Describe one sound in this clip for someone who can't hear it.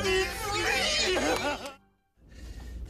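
A group of men and women cheer and shout excitedly.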